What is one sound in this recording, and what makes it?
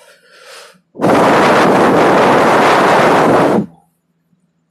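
A board eraser rubs loudly across a whiteboard.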